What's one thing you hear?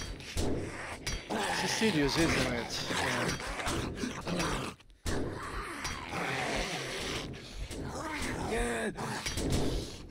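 A wooden club bangs against a metal door.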